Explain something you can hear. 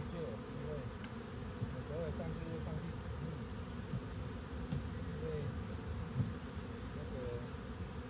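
Bees buzz steadily around a hive.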